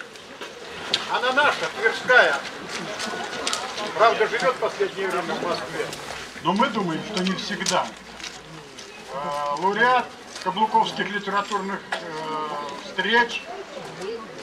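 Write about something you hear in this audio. An elderly man speaks calmly into a microphone, heard through loudspeakers outdoors.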